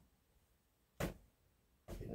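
A clothes hanger clacks against a rail.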